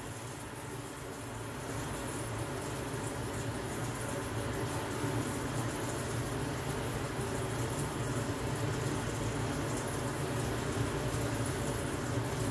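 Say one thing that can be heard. A forge fire roars steadily under a blower.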